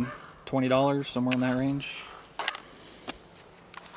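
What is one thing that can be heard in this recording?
A plastic holster clicks and rattles as it is handled.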